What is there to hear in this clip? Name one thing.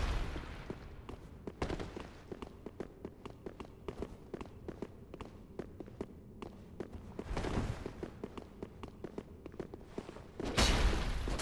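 Metal armour clanks with quick footsteps on stone.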